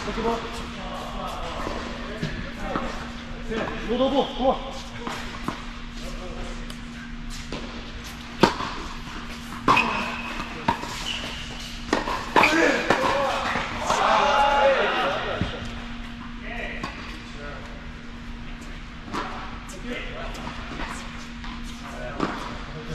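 Tennis balls are struck with rackets in a large echoing hall.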